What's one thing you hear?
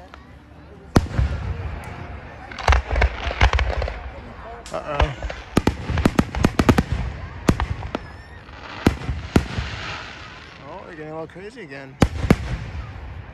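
Aerial firework shells burst with sharp booms that echo outdoors.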